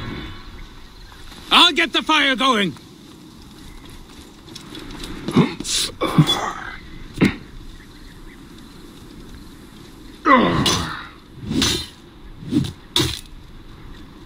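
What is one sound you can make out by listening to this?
Weapons clash and thud in a fight.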